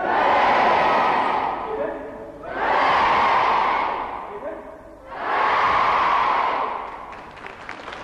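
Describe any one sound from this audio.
A large crowd cheers loudly in waves, echoing through a large hall.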